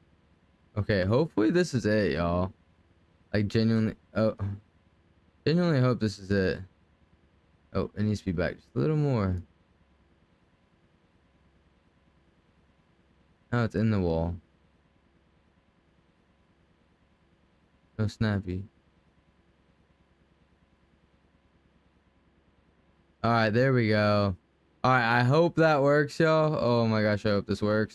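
A man talks casually and close to a microphone, in short bursts.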